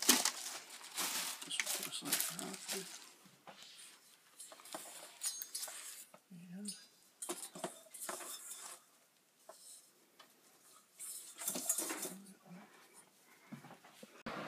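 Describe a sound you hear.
A cardboard box scrapes and thumps as things are lifted out.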